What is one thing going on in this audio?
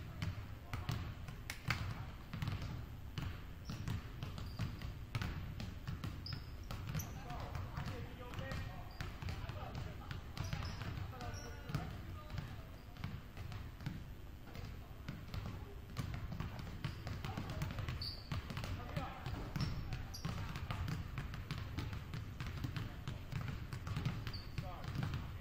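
Basketballs bounce on a wooden floor with echoing thuds in a large hall.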